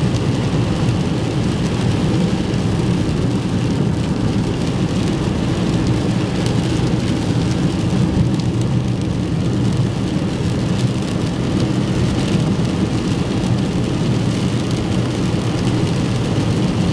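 Windshield wipers sweep back and forth with a soft thump.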